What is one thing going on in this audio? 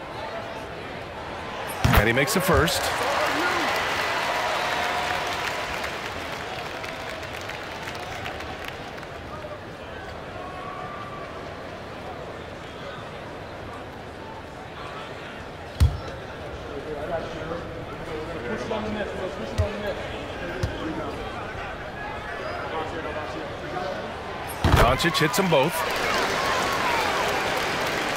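A large arena crowd murmurs steadily.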